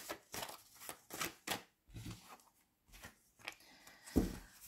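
Playing cards flick and slap together as they are shuffled.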